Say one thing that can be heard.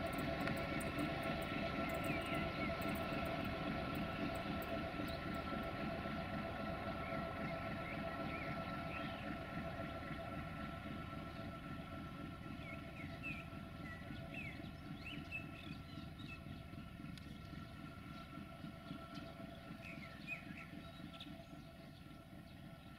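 A freight train rumbles past on the tracks, slowly fading.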